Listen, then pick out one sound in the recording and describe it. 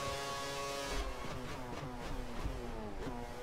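A racing car engine drops in pitch with quick downshifts as the car brakes.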